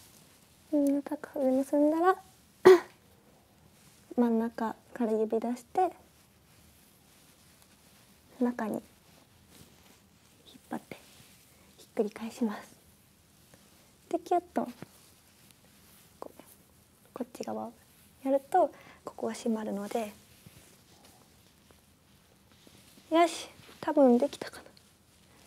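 A young woman speaks brightly and close to a microphone, in short bursts with pauses.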